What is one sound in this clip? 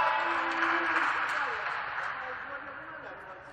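A group of young men cheer loudly in a large echoing hall.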